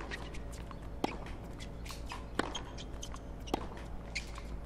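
A tennis ball is hit back and forth with rackets.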